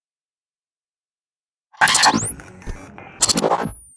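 A handgun clicks as it is readied.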